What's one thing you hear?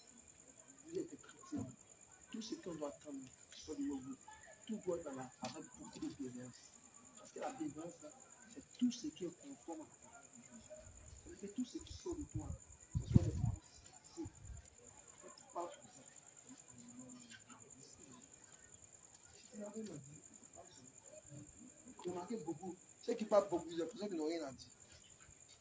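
A man speaks loudly and with animation to a gathering outdoors, some distance away.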